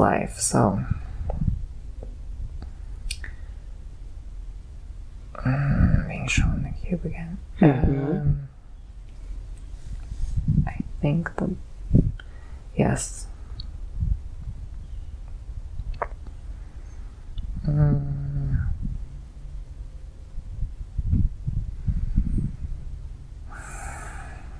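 A young man moans and breathes heavily close by.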